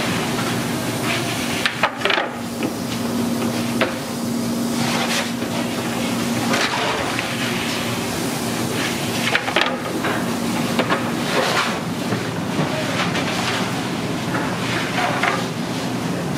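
Wooden peels scrape and knock against a stone oven floor.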